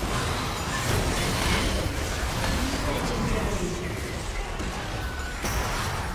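Game spells and attacks crackle, whoosh and burst in a busy fight.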